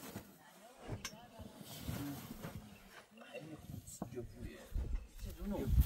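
A heavy carpet drags and rustles across the floor.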